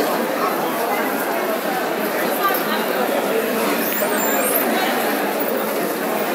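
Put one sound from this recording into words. A crowd of men and women murmur and chatter in a large echoing hall.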